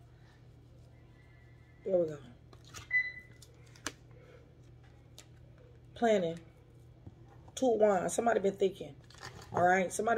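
Cards flick and riffle as they are shuffled.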